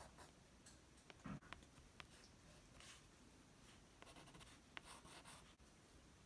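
A pencil scratches and scribbles on paper close by.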